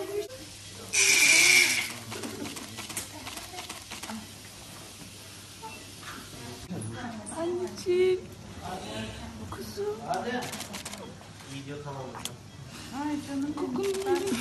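A newborn baby cries loudly.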